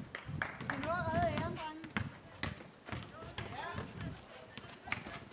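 A basketball bounces on hard ground outdoors.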